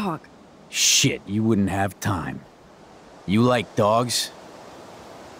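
A man speaks in a low, mocking voice.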